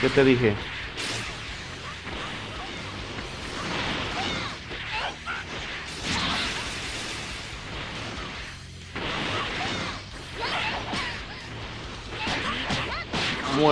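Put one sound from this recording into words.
Punches thud in quick bursts.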